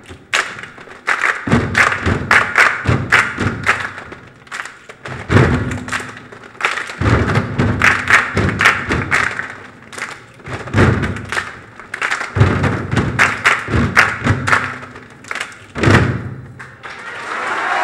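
A children's choir chants and sings rhythmically in an echoing hall.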